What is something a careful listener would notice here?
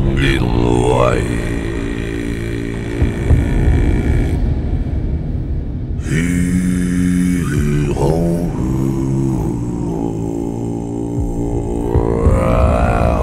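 An electric guitar plays a loud tune.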